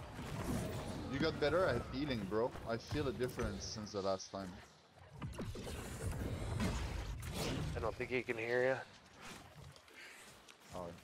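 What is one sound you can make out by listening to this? Magic blasts whoosh and crackle during a fight.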